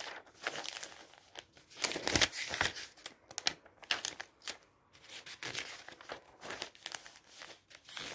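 A hand smooths and brushes over paper pages.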